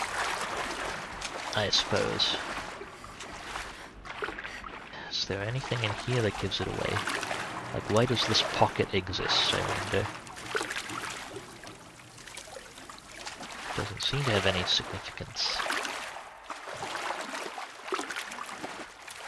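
Water splashes softly as a figure swims.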